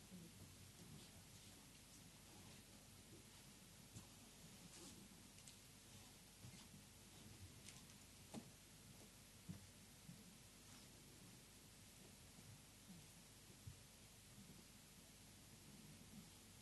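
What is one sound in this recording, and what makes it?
A small crowd of men and women murmur softly nearby.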